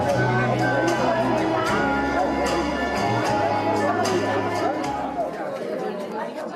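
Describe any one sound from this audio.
Music plays over loudspeakers.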